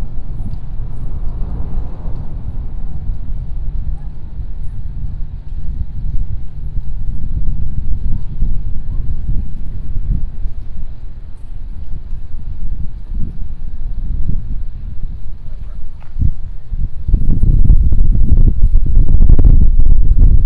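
Water laps gently against bridge pilings.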